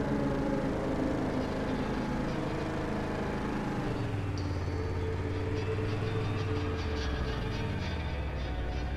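A vehicle engine hums steadily as it drives along.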